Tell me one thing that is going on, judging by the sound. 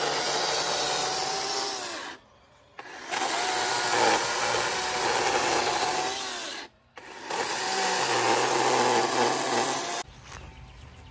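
An electric hedge trimmer buzzes loudly in short bursts.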